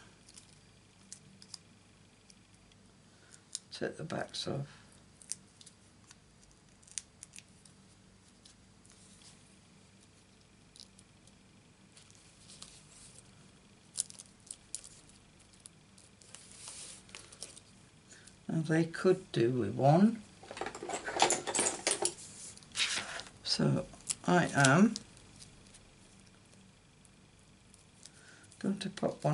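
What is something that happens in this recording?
Paper rustles and crinkles as pieces are handled and pressed down.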